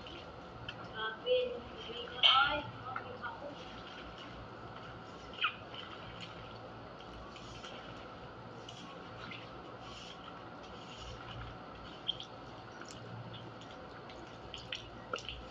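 Brooms scrub a wet tiled floor.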